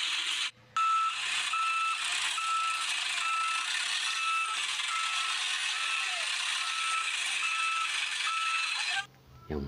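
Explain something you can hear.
A truck's reversing alarm beeps steadily.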